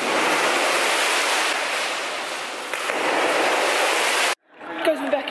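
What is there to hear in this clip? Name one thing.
Water splashes loudly as a swimmer dives into a pool.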